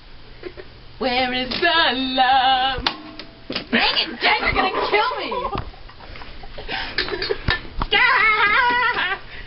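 A young girl shrieks and laughs excitedly nearby.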